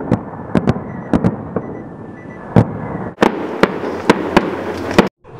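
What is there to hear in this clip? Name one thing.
Fireworks fizz and hiss as sparks shower down.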